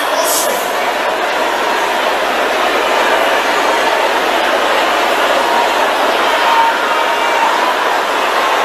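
A man preaches forcefully into a microphone.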